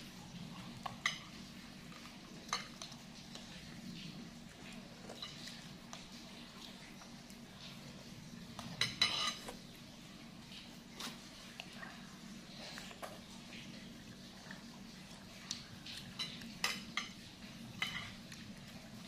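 Forks and spoons clink against a glass bowl.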